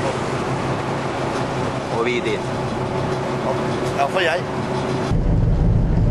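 Wind buffets outdoors over open water.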